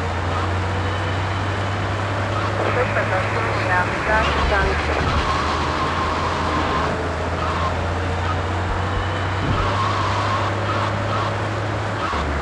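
A tank engine rumbles steadily and deeply.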